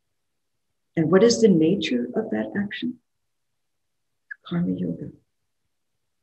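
An elderly woman speaks calmly through an online call microphone.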